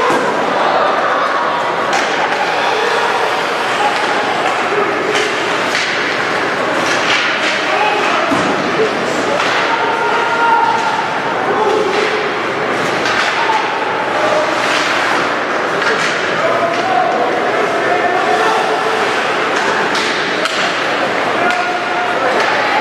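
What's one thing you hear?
A crowd of spectators chatters and calls out in a large echoing rink.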